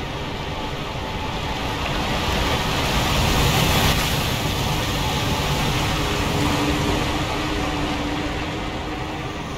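A waterfall rushes loudly, swelling and then fading.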